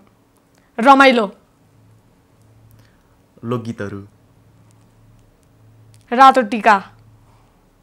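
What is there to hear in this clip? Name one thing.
A young girl speaks with animation close to a microphone.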